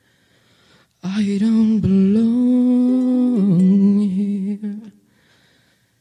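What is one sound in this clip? A young girl sings a long held note into a microphone.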